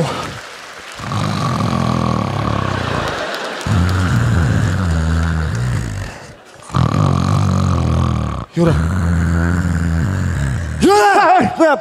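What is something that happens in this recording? A man snores loudly into a microphone.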